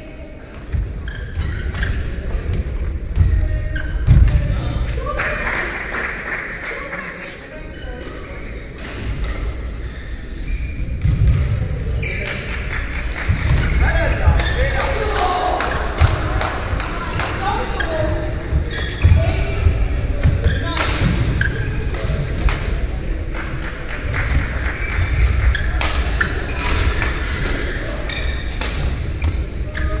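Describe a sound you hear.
Shuttlecocks are struck sharply with rackets, echoing in a large hall.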